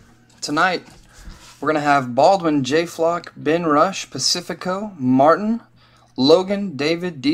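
A paper notebook rustles as it is picked up.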